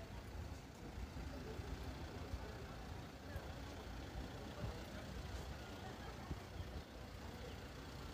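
A bus engine idles nearby with a low rumble.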